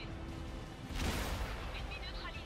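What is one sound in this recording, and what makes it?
A tank gun fires with a loud boom.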